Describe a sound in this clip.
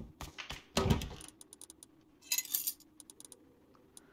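Soft clicks sound as items are moved in a game menu.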